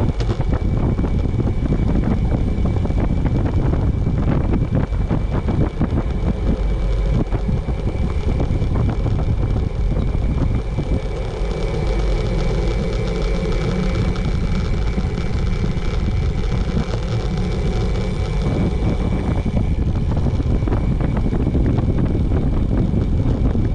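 Wind rushes loudly past a moving bicycle outdoors.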